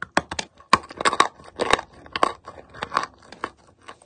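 A person bites into a piece of dry chalk with a sharp snap.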